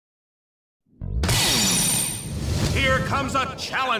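An arcade game blares loud, crashing sound effects.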